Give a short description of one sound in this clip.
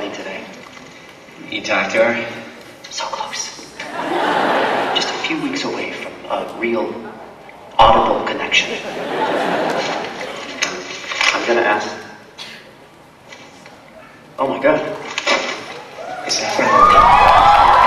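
A young man speaks loudly in an echoing hall.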